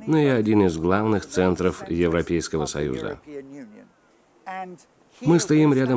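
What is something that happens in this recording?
An elderly man speaks with animation outdoors, close by.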